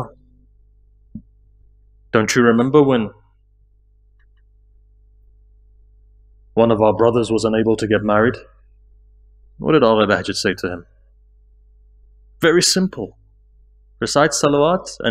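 A man speaks slowly and solemnly into a microphone, in phrases with long pauses.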